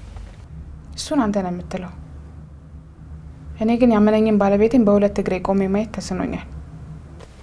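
A young woman speaks calmly on a phone, close by.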